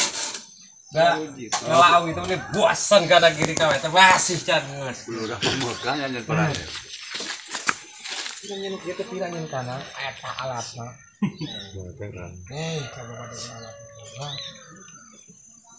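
A man talks nearby with animation.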